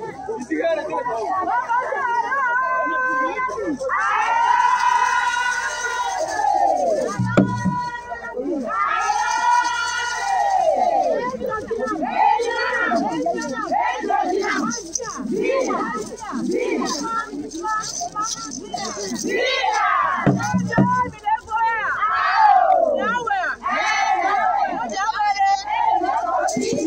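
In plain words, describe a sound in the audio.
A group of women sings loudly together outdoors.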